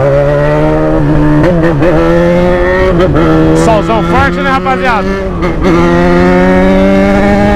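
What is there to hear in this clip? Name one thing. A motorcycle engine drones loudly and steadily up close.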